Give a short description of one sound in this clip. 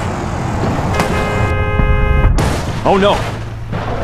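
A car crashes with a loud metallic crunch.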